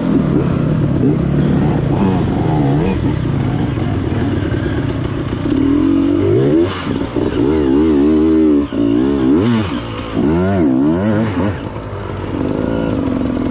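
Other dirt bike engines buzz nearby.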